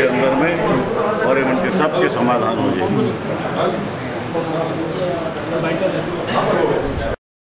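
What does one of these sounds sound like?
A crowd of men murmurs and talks nearby.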